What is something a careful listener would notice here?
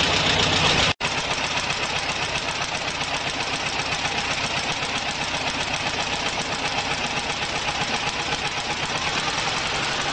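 A spark plug snaps with rapid, even sparks.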